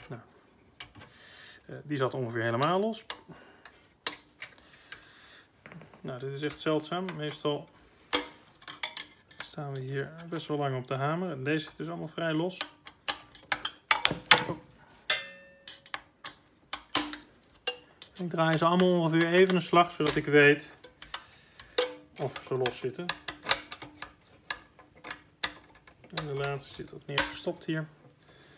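Wires and small metal parts click and rattle as hands handle them.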